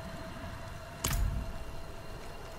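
A game menu closes with a short whoosh.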